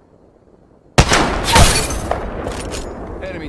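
A rifle fires a single loud, echoing shot.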